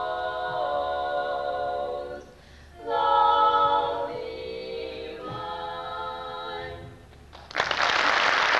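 A group of women sing together in close harmony through microphones.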